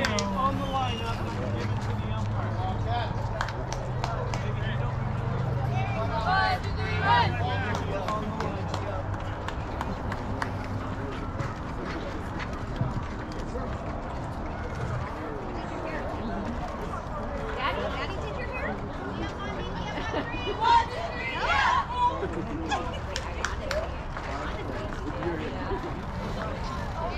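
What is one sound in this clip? Young women call out to each other across an open field outdoors.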